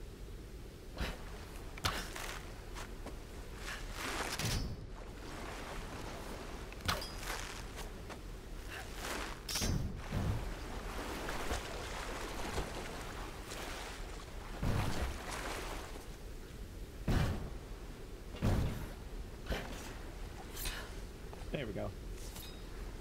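Thuds and scrapes of climbing and landing sound now and then.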